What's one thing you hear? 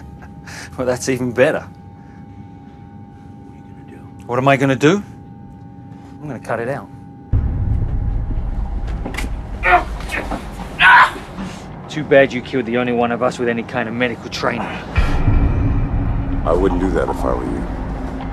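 A man speaks in a low, tense voice.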